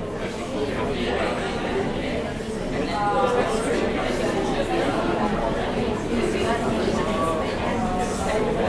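A man speaks calmly into a handheld microphone, heard through a loudspeaker in a room.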